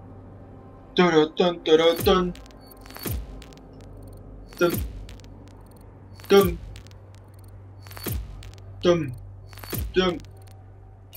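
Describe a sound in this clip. Short electronic whooshes and chimes sound from a game menu as points tally up.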